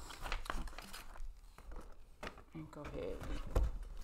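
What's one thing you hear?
Cardboard scrapes as a box is moved.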